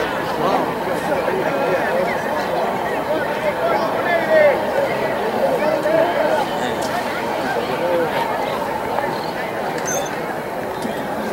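A large crowd of spectators chatters and calls out outdoors.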